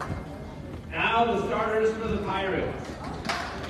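A woman nearby shouts loudly.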